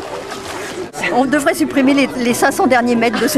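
A middle-aged woman speaks close up, cheerfully.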